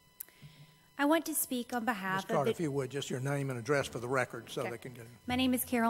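A young woman speaks calmly into a microphone in an echoing room.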